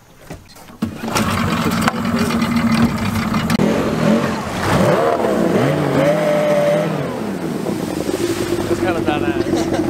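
An outboard motor starts and roars loudly, revving up and down.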